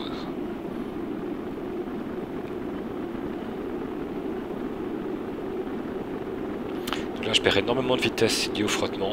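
A steady, low roar of rushing air from a capsule plunging through the atmosphere.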